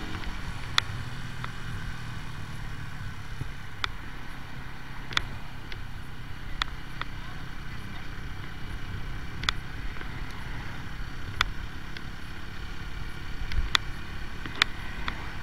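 A motorcycle engine rumbles steadily while riding along a road.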